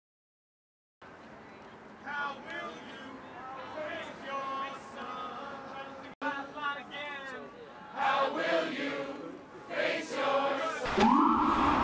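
A crowd of people chant and talk loudly outdoors.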